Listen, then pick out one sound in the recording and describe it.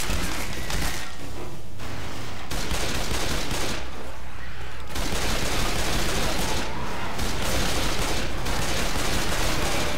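Pistols fire rapid gunshots.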